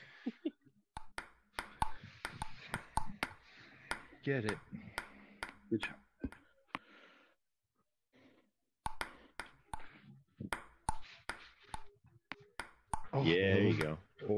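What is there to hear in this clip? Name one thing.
A ping-pong ball clicks sharply against paddles and a table in a quick back-and-forth.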